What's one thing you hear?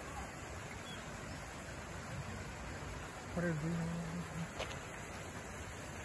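A small waterfall splashes in the distance.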